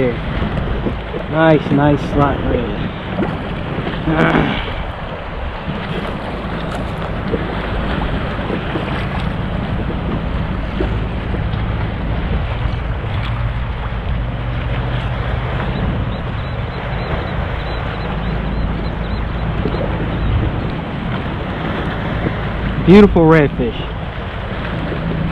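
Small waves lap against the hull of a kayak.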